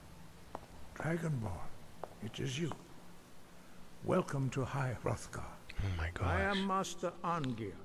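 An elderly man speaks slowly in a deep voice.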